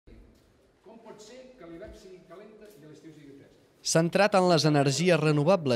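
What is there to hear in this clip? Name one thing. An older man speaks calmly to a small group.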